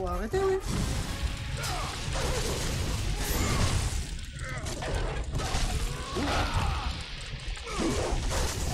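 Fiery explosions boom and crackle.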